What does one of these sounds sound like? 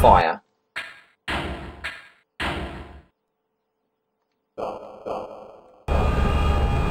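Short menu blips sound in quick succession.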